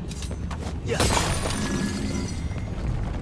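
A burst of sparks crackles and booms.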